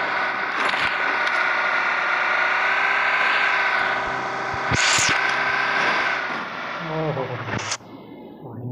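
A car engine drones steadily and then winds down.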